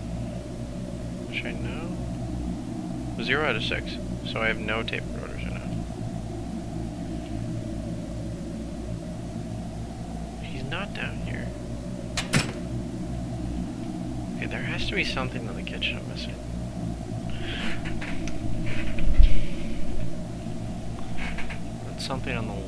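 Small footsteps patter softly on a hard floor.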